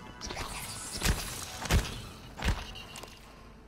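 A heavy wrench smacks into a creature with loud, wet thuds.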